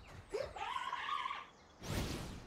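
A creature lets out a rising, warbling cry.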